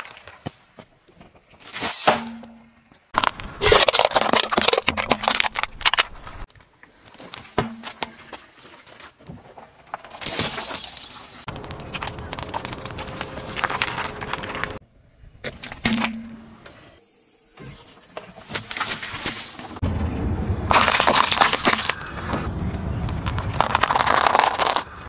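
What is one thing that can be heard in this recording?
A car tyre crushes objects with crackling, crunching and popping sounds.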